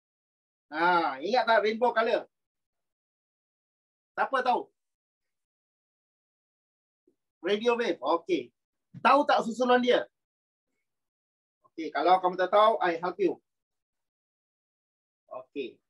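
A middle-aged man speaks calmly in short phrases over an online call.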